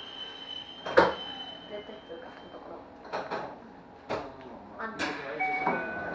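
Switches on a control panel click sharply several times.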